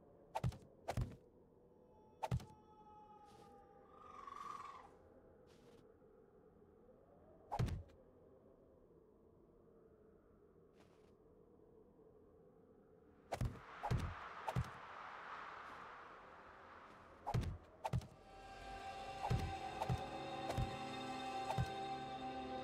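Heavy blocks thud sharply into place, one after another.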